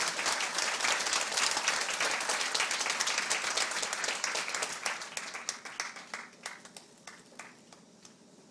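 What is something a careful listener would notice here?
An audience claps loudly, then the applause thins out and fades away.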